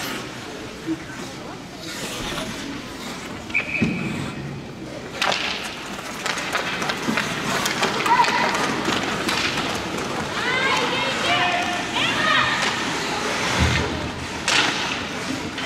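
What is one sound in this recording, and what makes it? Hockey sticks clack against a puck.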